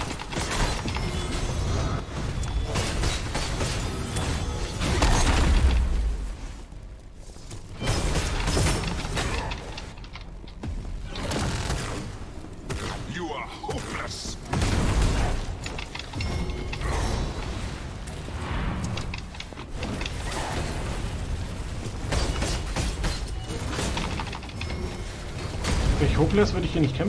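Weapons clash and blasts boom in a fight.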